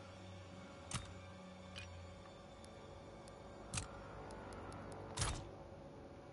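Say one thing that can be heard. Short electronic clicks sound as menu choices are made.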